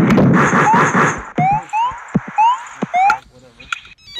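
Short rising electronic blips chirp quickly, one after another.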